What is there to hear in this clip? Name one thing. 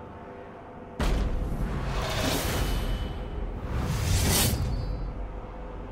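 A deep rushing whoosh swells up, then fades.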